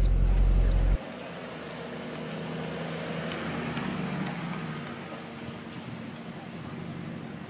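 A sports car engine rumbles as the car rolls slowly past and fades.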